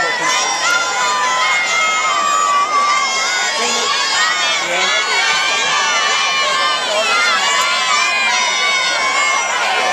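Many young men chatter and call out nearby.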